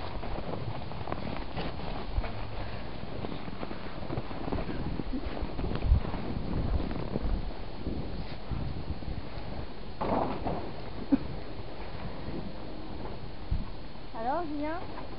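A small child's boots crunch softly on snow.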